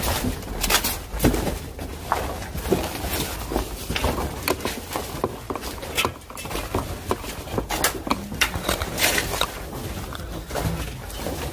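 Footsteps crunch on debris along a corridor.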